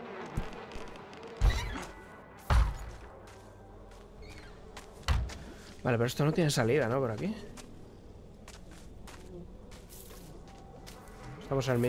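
Footsteps walk over soft ground.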